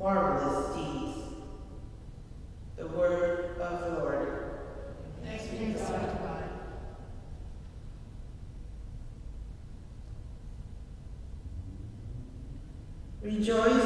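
A woman speaks calmly through a microphone in a large echoing hall, with pauses.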